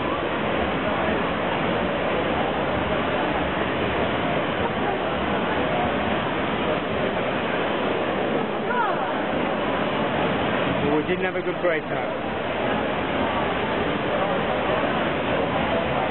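Swimmers splash and churn the water in an echoing indoor pool.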